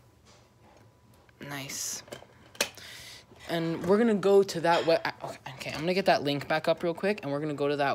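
A plastic game case clicks and rattles in a hand.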